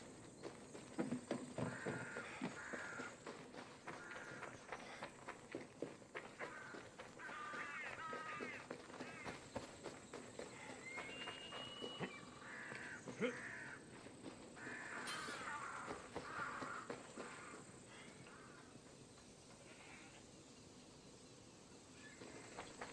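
Footsteps patter quickly over dry ground and wooden planks.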